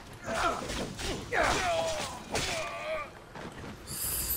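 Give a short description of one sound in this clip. A sword slashes and strikes in a fight.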